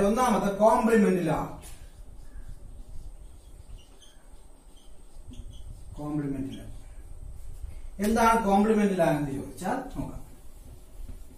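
A man speaks calmly and clearly nearby, as if explaining.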